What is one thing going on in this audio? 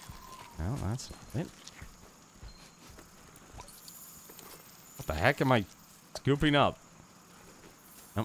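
Footsteps run over rough ground.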